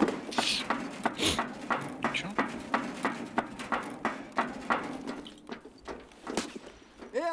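Footsteps thud quickly and evenly on a hard surface.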